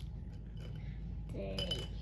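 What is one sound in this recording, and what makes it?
Marker pens rattle in a glass jar.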